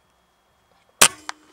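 An air rifle fires a single sharp shot close by.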